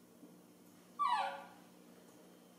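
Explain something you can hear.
A baby monkey gives a short, falling squeak.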